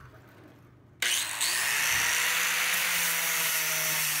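An angle grinder starts up and whirs loudly at high speed.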